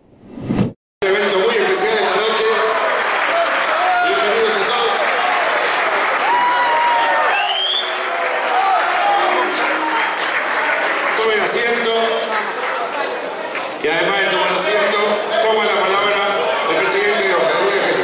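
A large crowd cheers and shouts excitedly in a busy, echoing room.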